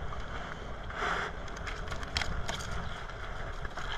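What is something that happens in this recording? A fish flaps and thrashes in a net.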